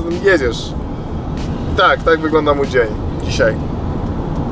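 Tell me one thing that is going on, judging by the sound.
A young man speaks casually up close.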